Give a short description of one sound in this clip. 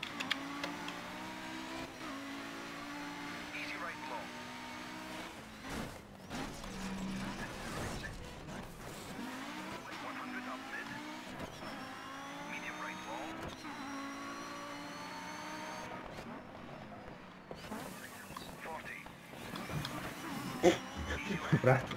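A rally car engine revs high and shifts through gears.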